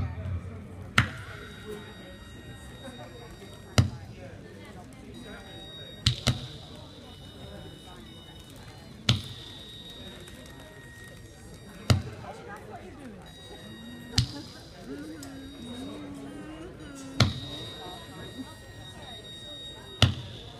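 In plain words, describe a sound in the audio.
A synthesizer makes sharp clicks at a slow, even beat.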